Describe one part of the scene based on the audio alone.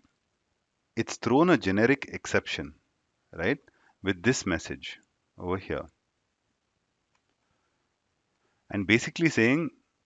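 A young man speaks calmly and clearly into a close microphone, in short bursts with pauses.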